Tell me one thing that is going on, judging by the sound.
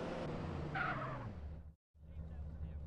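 A car engine hums and then cuts off.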